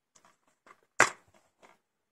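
A plastic disc case clicks open.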